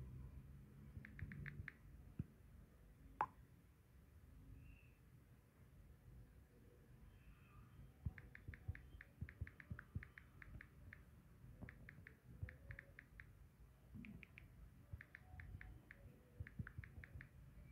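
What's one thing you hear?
Keyboard taps click quickly in short bursts.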